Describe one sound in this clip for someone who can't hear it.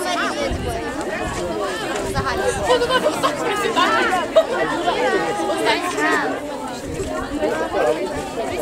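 Young girls chatter and laugh close by, outdoors.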